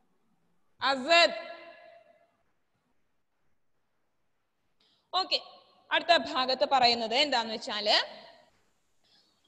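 A woman speaks calmly into a headset microphone over an online call.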